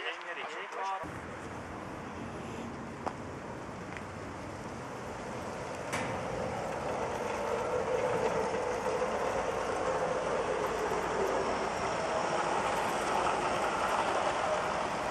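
The wheels of a model freight train rumble on the rails as it passes close by.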